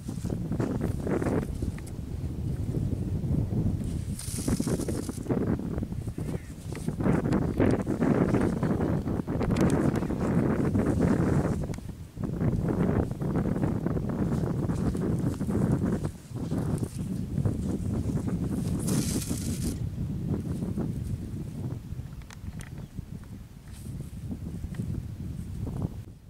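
Wind blows steadily outdoors, rumbling.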